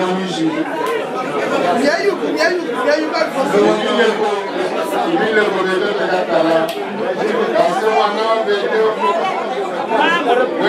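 A woman sings loudly close by.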